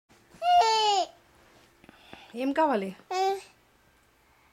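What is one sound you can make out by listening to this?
A toddler girl squeals and babbles in a high voice close by.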